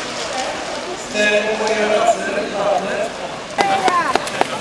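A crowd of people cheers and shouts outdoors.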